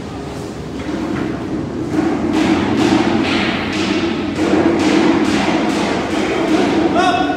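Footsteps on concrete echo in a large unfinished building.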